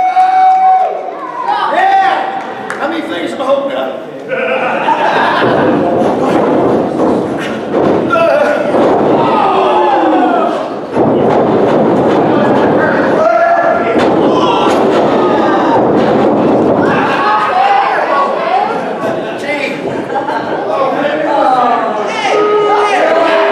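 Several men and women in the crowd shout and chant close by.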